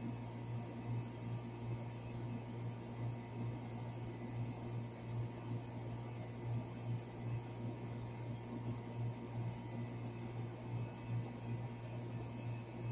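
An outdoor air conditioning unit hums steadily with a low, throbbing drone.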